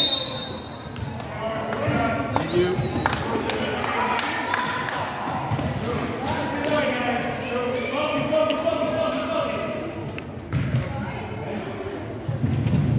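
Spectators talk and call out in an echoing gym.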